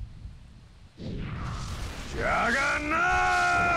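A magic spell bursts with a loud whoosh.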